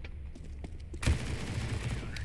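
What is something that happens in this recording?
A submachine gun fires a quick burst.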